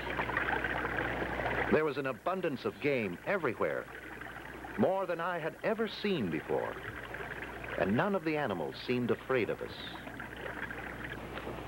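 A small stream splashes over rocks.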